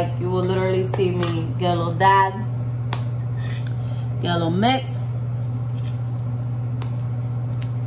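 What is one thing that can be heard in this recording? A spoon scrapes and clinks in a metal bowl.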